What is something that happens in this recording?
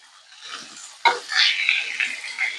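Raw meat drops into a hot pan and sizzles loudly.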